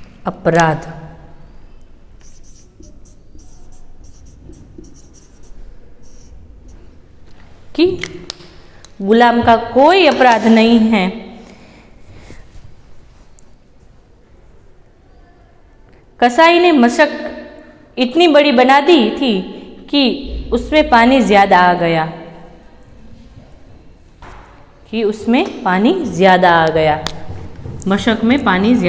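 A young woman speaks clearly and with animation close to a microphone.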